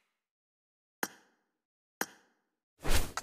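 Game menu buttons click with short, bright chimes.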